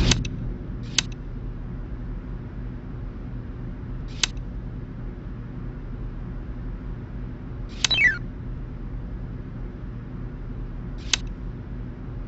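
Short electronic clicks sound as puzzle tiles are placed.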